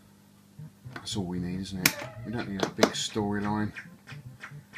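Arcade game music and electronic sound effects play from a cabinet speaker.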